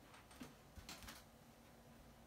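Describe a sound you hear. A chair creaks as a person stands up.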